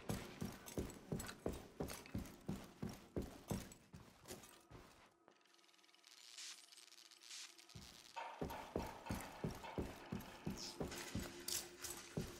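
Heavy boots tread steadily on a hard floor.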